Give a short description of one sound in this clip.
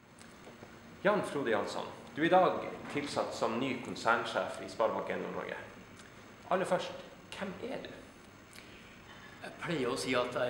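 A man speaks calmly up close into a microphone.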